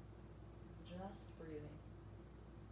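A woman speaks briefly and calmly, close by.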